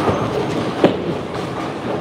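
Bowling pins crash and clatter in a large echoing hall.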